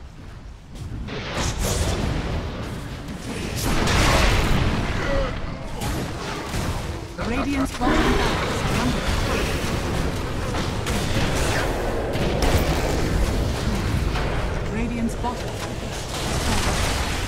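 Game spells and weapons clash and crackle in a busy fight.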